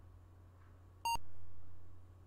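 A computer game gives a short electronic beep.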